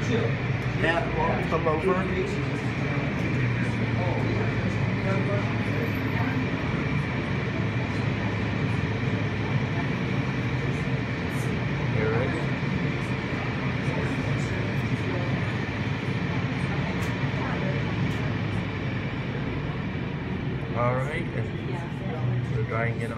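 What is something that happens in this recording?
Machinery hums steadily.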